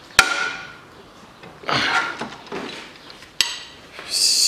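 A metal wrench clicks against an engine part.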